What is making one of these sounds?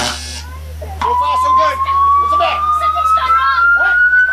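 An electronic device gives off a steady tone that slowly rises in pitch.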